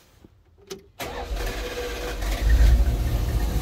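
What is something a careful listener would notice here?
A van engine cranks and starts.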